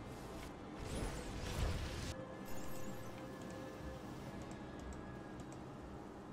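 Bursts of game battle effects crackle and whoosh.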